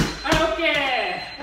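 A punch smacks against a padded shield.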